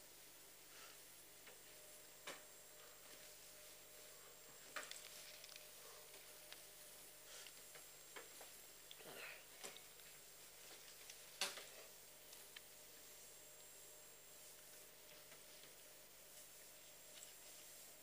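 A sponge rubs softly across a chalkboard.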